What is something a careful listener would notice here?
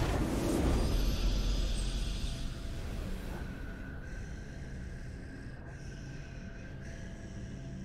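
A soft victory fanfare plays.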